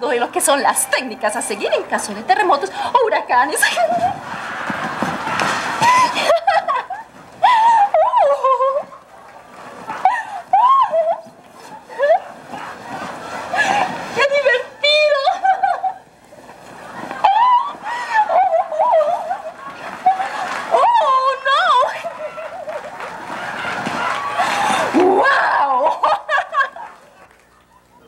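A young woman squeals and laughs playfully.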